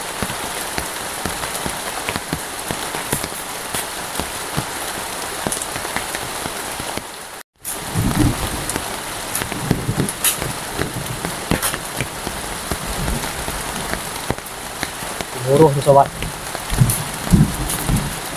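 Rain falls steadily on leaves outdoors.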